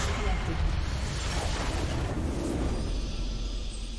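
A nexus explodes with a loud rumbling blast.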